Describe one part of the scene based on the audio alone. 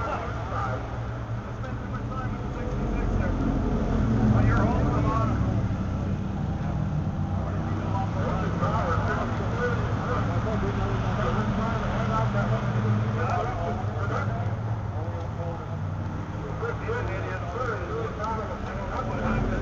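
A car engine idles with a steady, low rumble close by.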